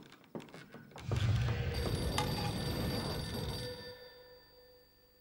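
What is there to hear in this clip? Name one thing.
Dishes rattle and rub.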